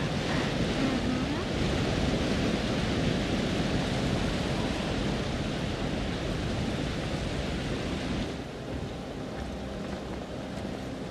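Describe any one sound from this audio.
Wind blows through snowy trees outdoors.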